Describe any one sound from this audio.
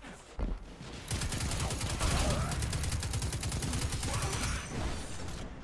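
A rapid-fire gun rattles in bursts.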